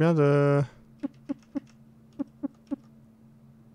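Short electronic blips sound as a game menu is browsed.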